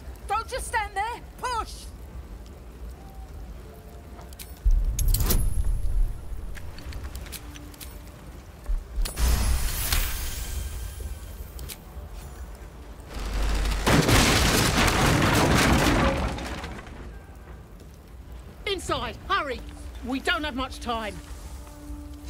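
A woman speaks firmly, close by.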